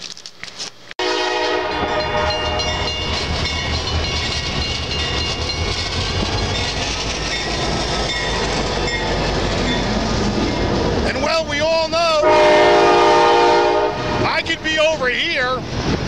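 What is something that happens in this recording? A freight train rumbles and clatters past.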